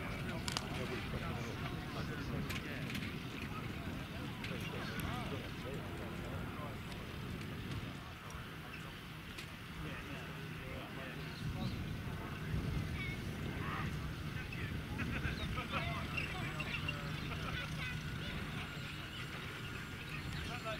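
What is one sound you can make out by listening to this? An old jeep engine rumbles steadily as it drives slowly across grass.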